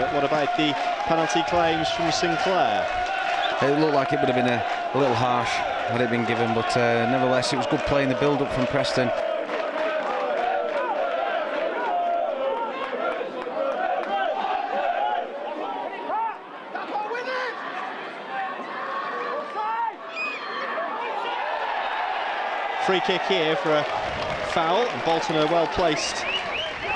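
A crowd murmurs and shouts in an open stadium.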